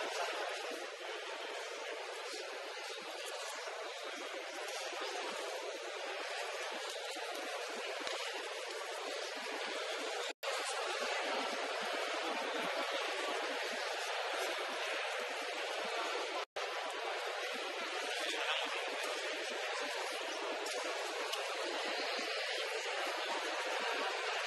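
A crowd murmurs and chatters throughout, echoing in a large hall.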